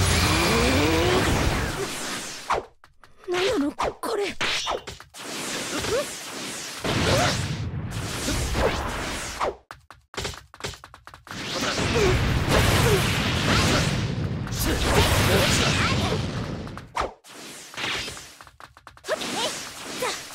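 Energy blasts roar and crackle in bursts.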